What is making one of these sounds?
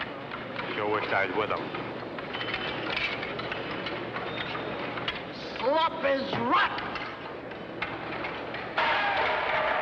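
A crowd of men murmurs and chatters in a large echoing hall.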